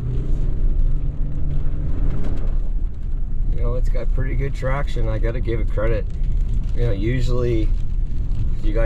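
Tyres crunch over packed snow.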